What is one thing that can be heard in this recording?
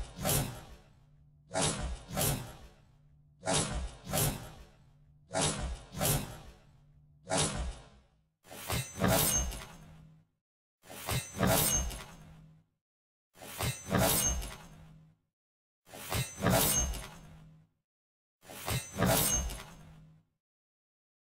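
A knife swishes and scrapes as it is drawn and twirled, in quick repeated bursts.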